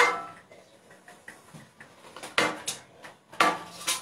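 A plate is set down on a table.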